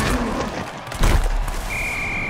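A heavy crunching impact hits.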